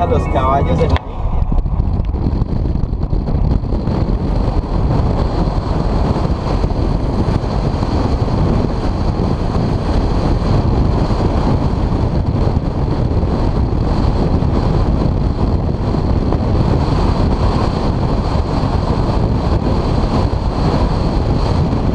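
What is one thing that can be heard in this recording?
Tyres hum steadily on the road.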